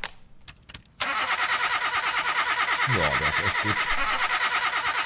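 A car engine idles with a steady, rapid throb.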